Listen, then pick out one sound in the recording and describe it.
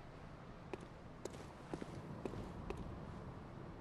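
Footsteps thud on stone paving.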